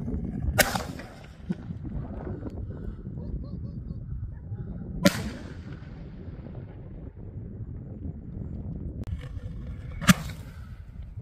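Fireworks bang sharply outdoors, one after another.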